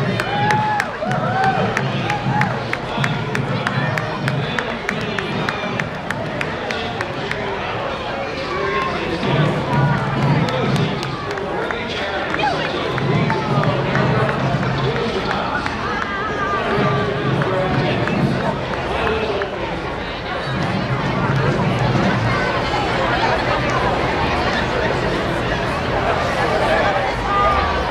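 A crowd of spectators chatters along a street outdoors.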